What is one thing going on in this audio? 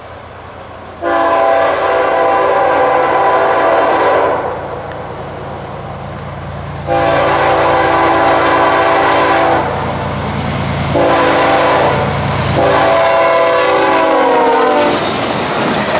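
A locomotive air horn blasts in long loud blows.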